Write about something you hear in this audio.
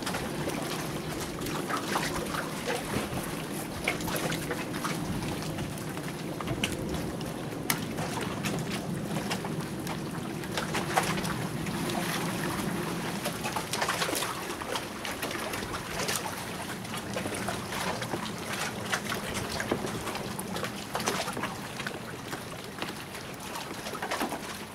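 A knife slices through fish flesh with soft wet scraping.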